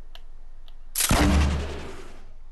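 A rifle shot goes off.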